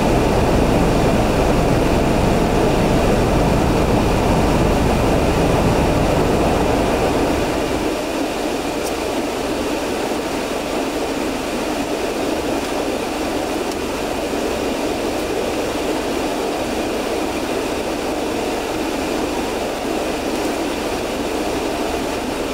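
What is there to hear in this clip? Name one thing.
A car engine idles nearby with a low, steady rumble.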